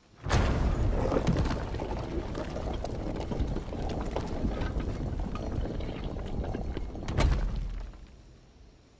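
A glowing portal roars and crackles loudly, then falls quiet.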